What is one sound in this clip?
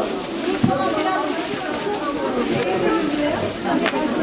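Plastic bags rustle as they are handled.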